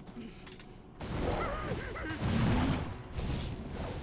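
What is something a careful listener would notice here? A heavy crash booms with a deep rumble.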